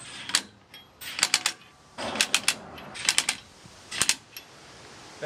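An impact wrench rattles in short bursts.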